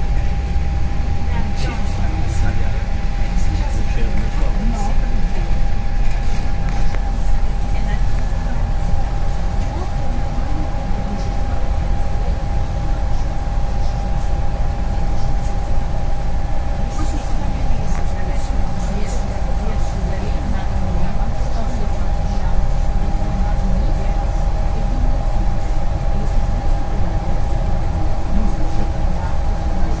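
The bus interior rattles and clicks.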